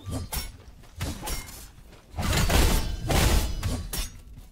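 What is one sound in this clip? Magical blasts and whooshes burst during a fight.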